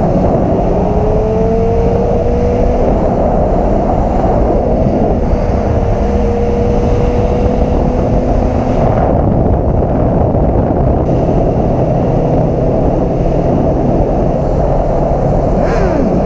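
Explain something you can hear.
Wind rushes loudly past outdoors.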